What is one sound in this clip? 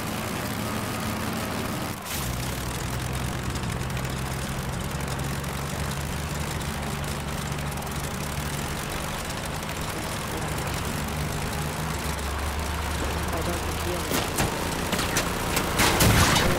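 An engine rumbles steadily as a vehicle drives over rough ground.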